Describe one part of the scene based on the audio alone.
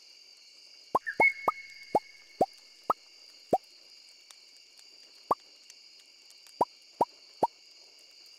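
A game makes short, bright popping blips, one after another.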